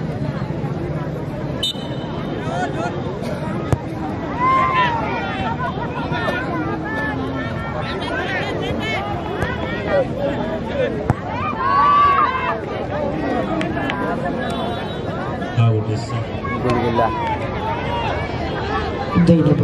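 A large outdoor crowd chatters and cheers steadily.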